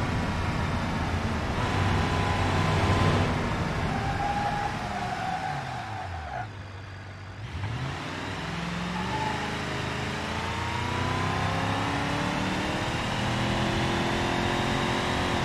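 Tyres roll on the road.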